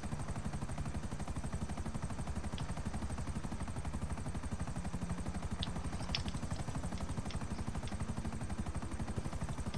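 A helicopter engine whines steadily.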